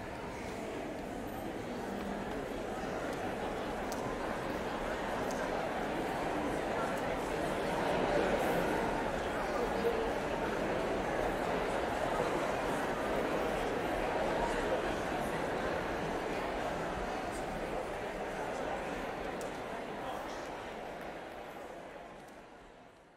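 An audience applauds steadily in a large echoing hall, fading away at the end.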